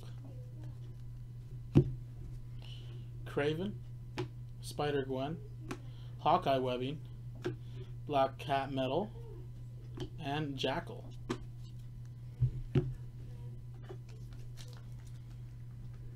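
Trading cards flick and rustle in a man's hands.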